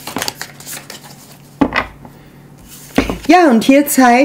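A playing card is slid softly across a wooden table.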